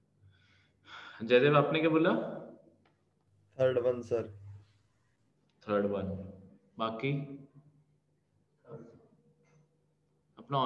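A man talks calmly into a close microphone, in short phrases with pauses.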